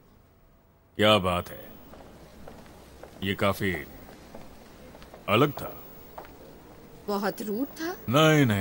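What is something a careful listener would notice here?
A man speaks calmly nearby, in short phrases.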